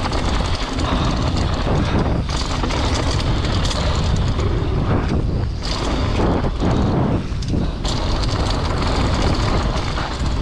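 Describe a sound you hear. Bicycle tyres roll and crunch fast over a rough dirt trail.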